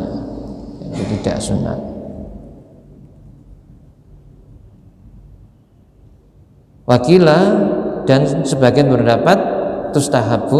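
An elderly man speaks calmly into a microphone in a slightly echoing room.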